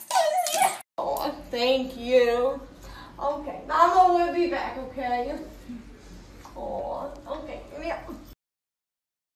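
A woman talks tearfully close by.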